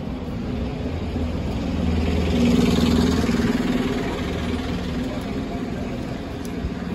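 A bus engine rumbles close by as the bus pulls past.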